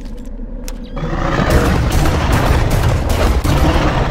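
A rapid-fire gun shoots in loud bursts.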